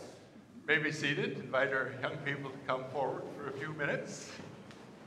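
An elderly man speaks calmly through a microphone in an echoing room.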